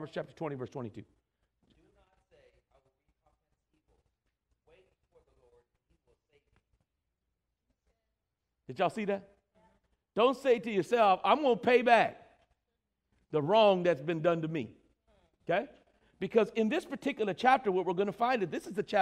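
A man preaches with animation through a microphone in an echoing hall, pausing between phrases.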